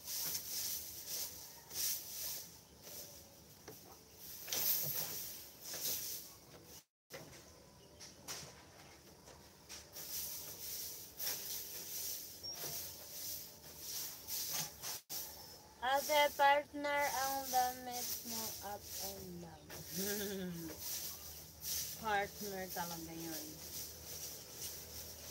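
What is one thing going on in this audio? Cloth rustles softly in a woman's hands.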